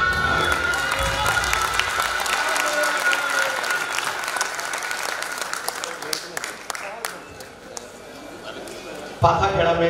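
Ankle bells jingle as dancers step.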